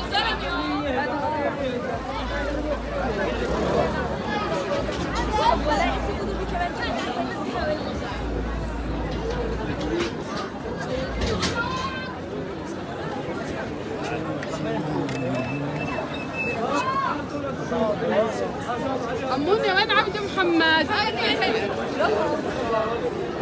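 A crowd of men and women talks and shouts all around, outdoors.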